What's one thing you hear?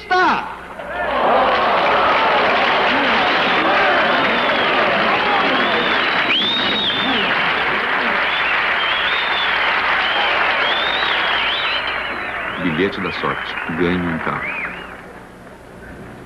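A large audience chatters and murmurs excitedly.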